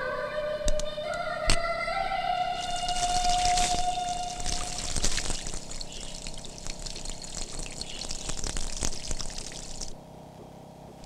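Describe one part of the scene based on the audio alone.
Water runs from a tap into a basin.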